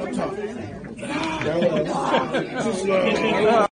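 Several women talk and exclaim excitedly.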